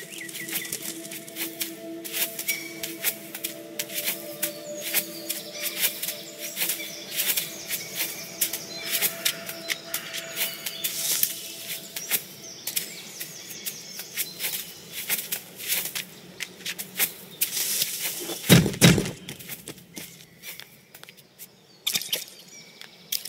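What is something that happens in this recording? Light footsteps patter quickly along the ground.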